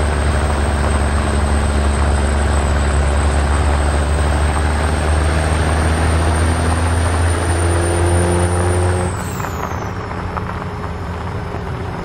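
Tyres crunch over a gravel road.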